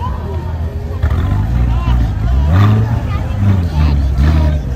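A sports car engine revs loudly up close.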